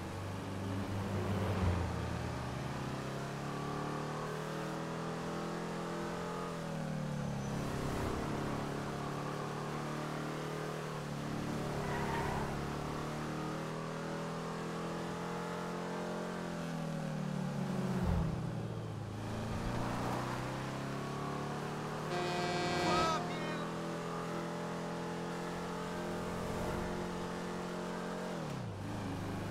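A car engine hums steadily, rising in pitch and dropping back as it changes gear.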